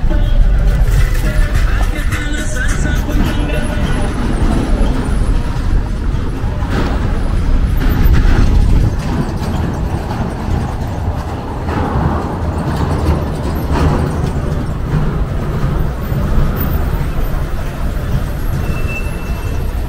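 Cars drive past close by on a cobbled street.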